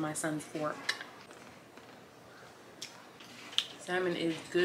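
A fork clinks against a plate.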